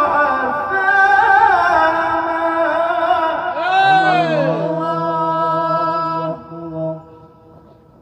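A man sings loudly and expressively into a microphone, heard through loudspeakers.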